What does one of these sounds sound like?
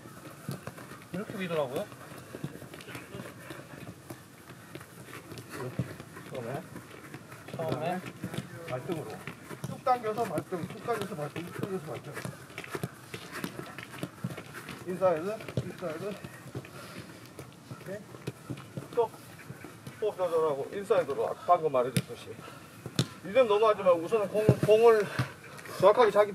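A football is kicked on artificial turf with soft thuds.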